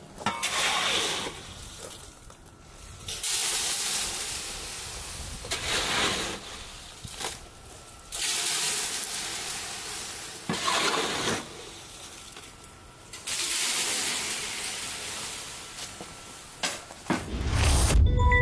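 A shovel scrapes and pours gravel into a box again and again.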